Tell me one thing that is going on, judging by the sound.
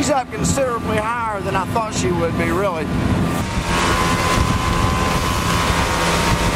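A motorboat engine roars at speed.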